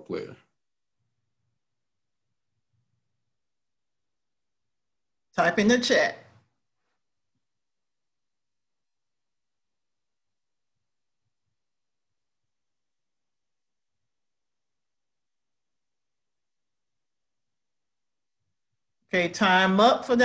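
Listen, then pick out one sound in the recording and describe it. A young man speaks close to a microphone, in short bursts with long silences between.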